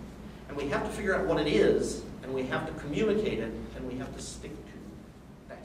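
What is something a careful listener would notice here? A middle-aged man speaks with animation to a room, heard from a short distance.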